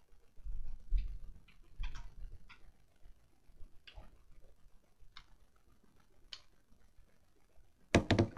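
Soft knocks and rustles of something being handled sound close by.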